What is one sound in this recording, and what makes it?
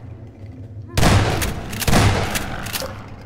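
A shotgun fires a few loud blasts.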